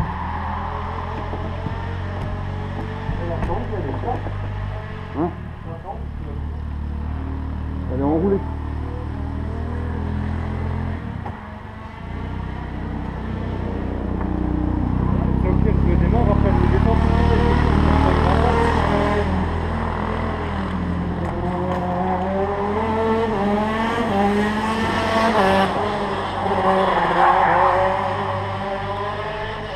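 A kart engine idles close by with a low, steady rumble.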